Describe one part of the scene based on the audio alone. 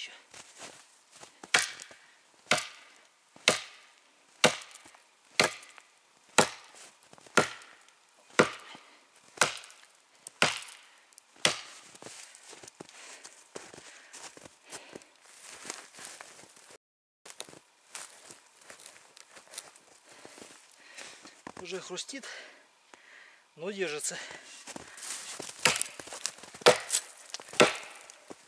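An axe chops into a tree trunk with sharp, regular thuds.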